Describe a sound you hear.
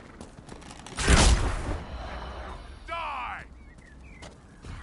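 Weapons clash and magic bursts crackle in a fight.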